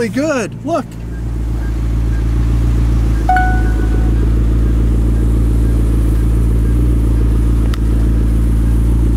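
A sports car engine idles with a steady low rumble.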